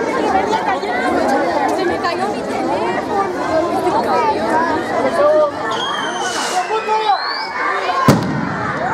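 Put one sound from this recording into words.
A crowd of women and girls chatter all around, outdoors.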